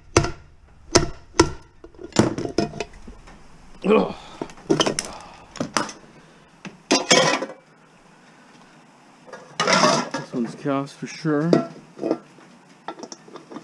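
Metal objects clank and knock against each other.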